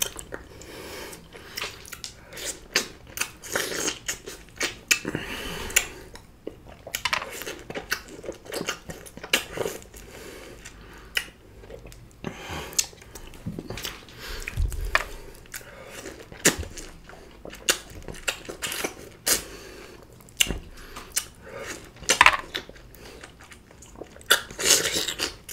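Juicy lime flesh squelches as a man bites it.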